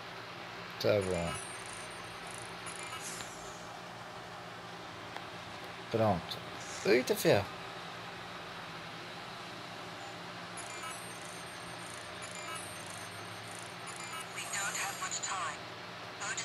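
An electronic scanner chirps and beeps in quick bursts.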